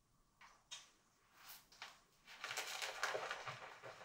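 A brush lathers foam onto a face.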